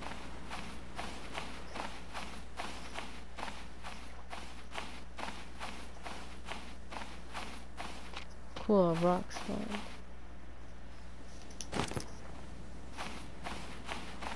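Footsteps crunch steadily on sand.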